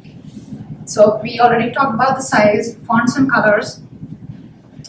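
A young woman speaks clearly in a room with a slight echo.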